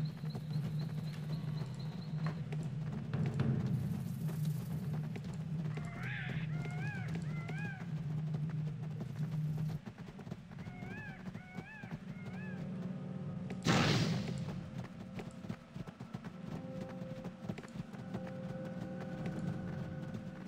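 Fantasy game combat sounds with magic spells and clashing.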